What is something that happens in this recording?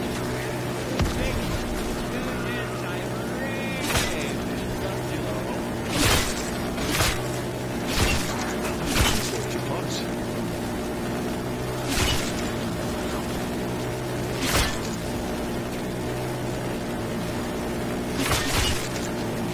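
Loud blasts bang now and then.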